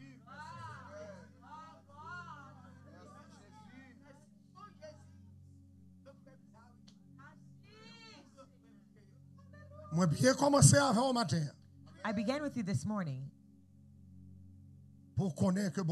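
An older man speaks into a microphone, quietly at first and then loudly and with animation, heard through loudspeakers.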